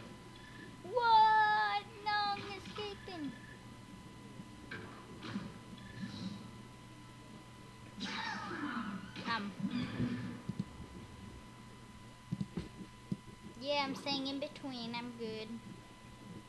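Small cartoon creatures chirp and squeak in short bursts.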